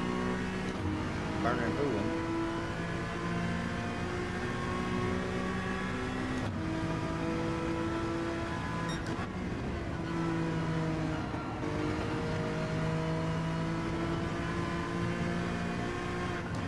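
A racing car engine roars steadily, rising and falling in pitch as the car shifts gears.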